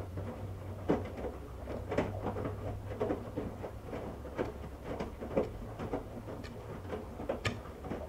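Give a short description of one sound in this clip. A washing machine motor hums low.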